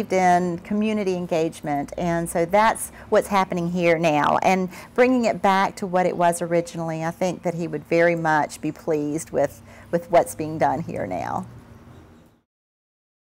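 A middle-aged woman talks with animation close to a microphone.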